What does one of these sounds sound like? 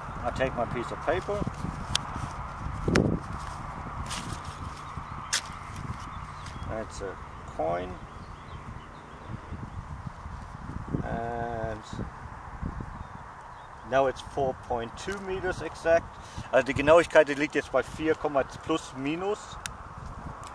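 A man talks calmly up close, outdoors.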